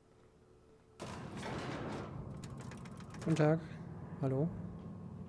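A lift rumbles and hums as it moves.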